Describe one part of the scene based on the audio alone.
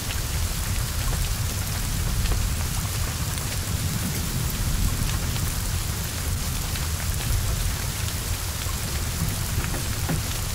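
Heavy rain pours steadily.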